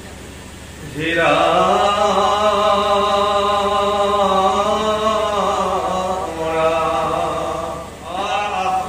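A young man chants through a microphone, holding out long notes.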